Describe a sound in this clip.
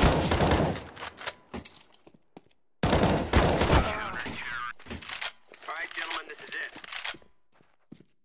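A rifle clicks and rattles as it is reloaded.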